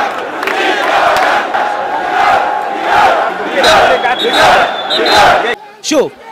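A large crowd chants and shouts loudly outdoors.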